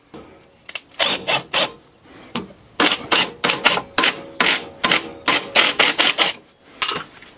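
An impact wrench rattles in short bursts.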